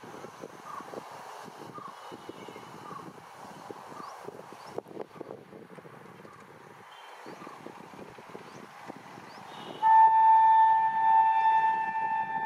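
An electric train approaches along the tracks with a low rumble.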